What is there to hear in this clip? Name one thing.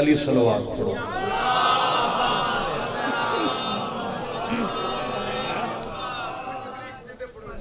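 A man chants with a long, sustained voice through a loudspeaker.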